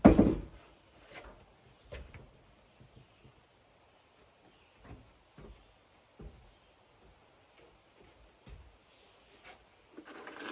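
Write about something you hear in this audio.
Footsteps thud across a wooden deck.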